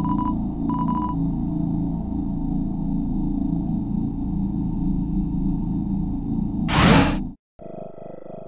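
Low, rumbling game music plays.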